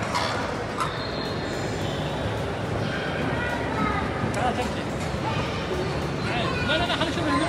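A crowd of people chatters in the background.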